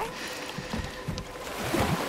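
A wooden oar splashes into water.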